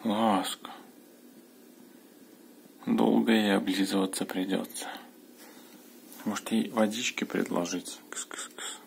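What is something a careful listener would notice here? A cat meows loudly, again and again.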